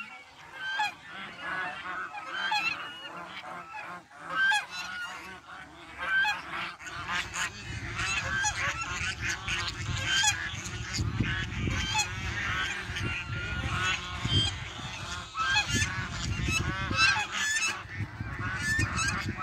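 Geese honk and cackle all around outdoors.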